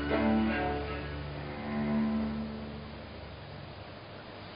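A string ensemble plays soft, low sustained notes that fade away.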